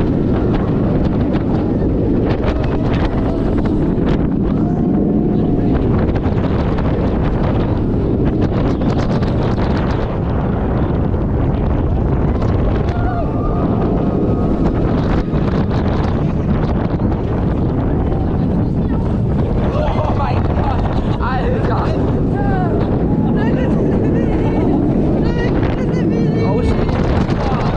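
Wind roars loudly past a roller coaster train.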